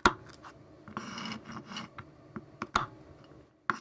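A knife chops nuts on a wooden board.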